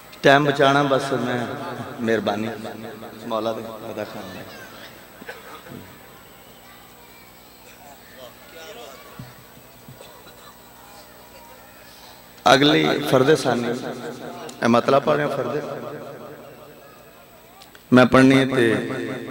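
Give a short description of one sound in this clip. A man recites loudly and with emotion into a microphone, heard through loudspeakers with echo.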